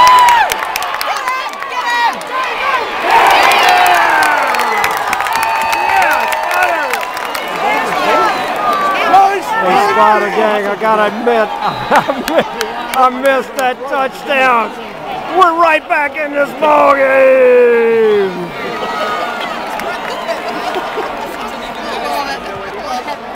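A large stadium crowd cheers and roars outdoors.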